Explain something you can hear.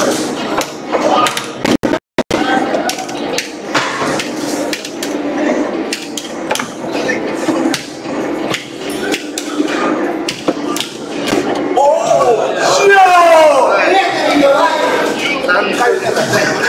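An arcade machine plays fighting game hits and music through its speakers.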